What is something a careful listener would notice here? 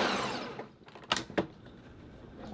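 A blender jar knocks as it is lifted off its base.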